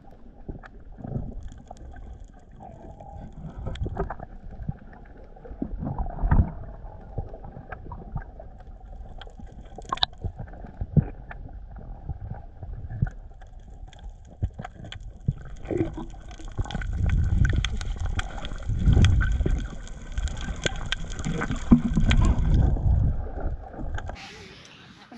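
Water rushes and rumbles, heard muffled underwater.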